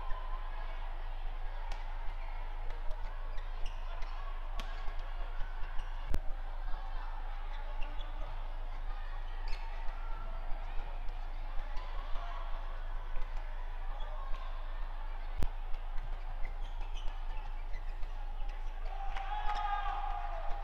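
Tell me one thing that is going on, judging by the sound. Badminton rackets smash and drive a shuttlecock back and forth in a fast rally.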